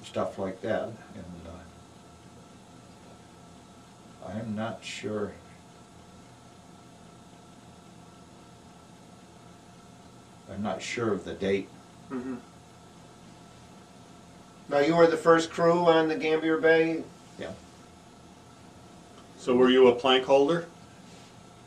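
An elderly man speaks calmly in bursts with long pauses, close by.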